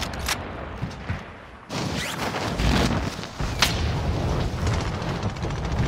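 Wind rushes past during a fall through the air.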